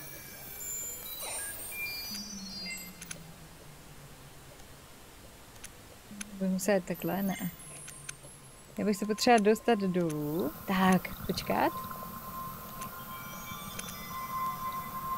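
Soft electronic beeps and chimes play now and then.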